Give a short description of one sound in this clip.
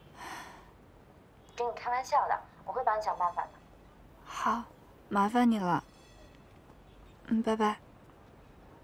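A young woman talks on a phone, calmly and then anxiously, close by.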